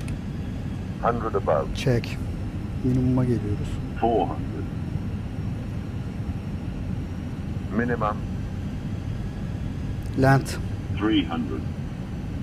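A man speaks casually in short bursts through a headset microphone.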